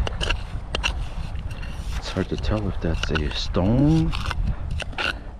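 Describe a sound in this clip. A blade scrapes and digs into damp sand.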